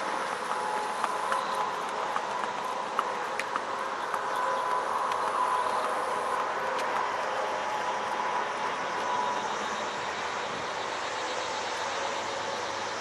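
A horse's hooves clop on hard pavement.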